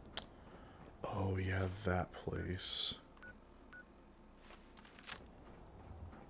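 A handheld device clicks and beeps as it is opened and used.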